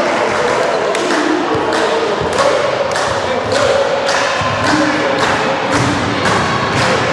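Players clap hands rhythmically.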